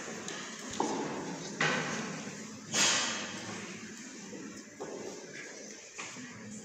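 A man speaks through a microphone in a large echoing room.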